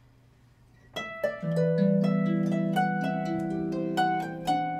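A harp is plucked, playing a gentle melody.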